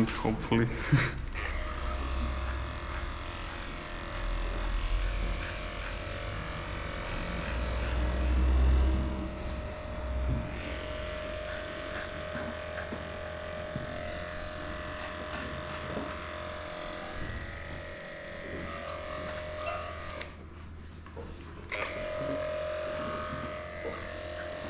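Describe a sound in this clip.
Electric clippers buzz steadily, close by.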